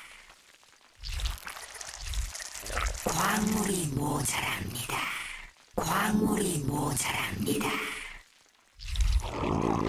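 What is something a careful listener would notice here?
A young man speaks with animation through a microphone.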